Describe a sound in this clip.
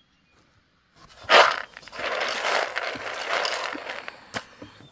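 Dry peanuts rustle and rattle as a hand stirs them in a metal basin.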